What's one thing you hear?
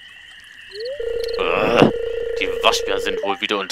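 A short electronic tone hums as a text box opens.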